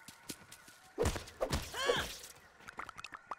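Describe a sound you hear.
Leaves rustle and snap as a plant is chopped.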